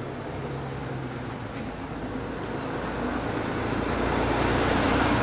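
Water trickles and splashes steadily into a pond.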